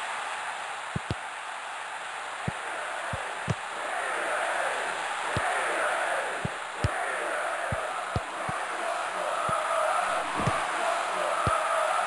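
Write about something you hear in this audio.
A football is kicked with dull thumps, again and again.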